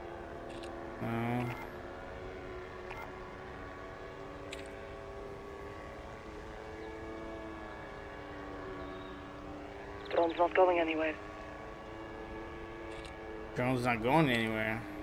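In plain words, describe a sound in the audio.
A man speaks in short bursts, close to a microphone.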